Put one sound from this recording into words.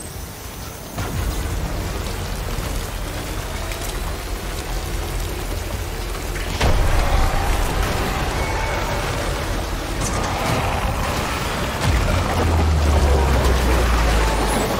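A truck engine rumbles as the vehicle drives over rough ground.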